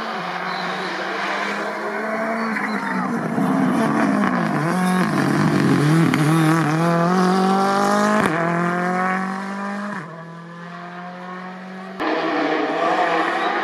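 A rally car engine roars and revs, shifting gears as the car speeds past.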